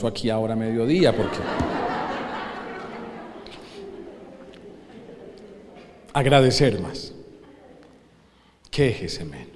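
A man speaks through a microphone in short bursts, echoing through a large hall.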